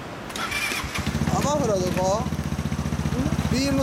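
A motorbike engine starts and idles with a steady low throb.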